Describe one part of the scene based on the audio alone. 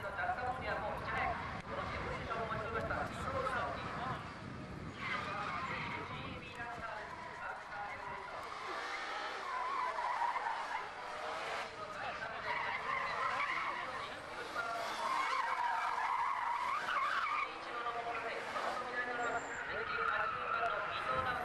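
A car engine revs hard and roars.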